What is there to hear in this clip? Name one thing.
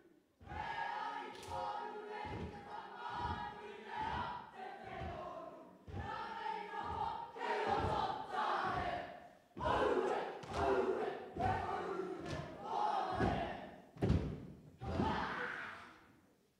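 Feet stomp on a floor in rhythm.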